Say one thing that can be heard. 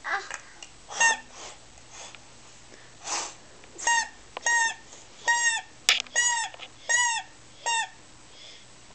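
A toddler blows a toy horn in short, repeated honks.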